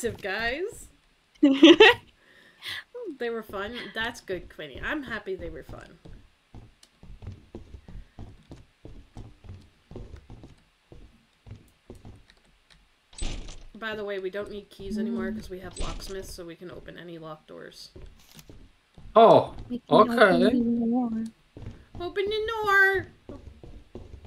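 A young woman talks with animation and exclaims close to a microphone.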